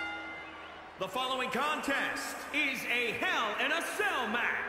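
A man announces through a loudspeaker.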